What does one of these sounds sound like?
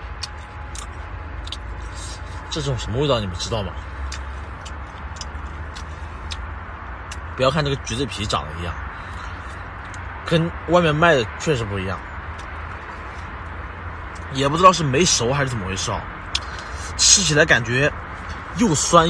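A young man smacks his lips while eating.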